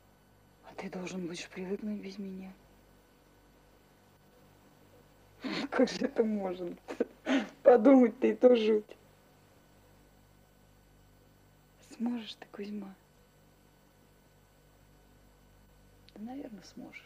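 A woman speaks calmly nearby, in short bursts with pauses.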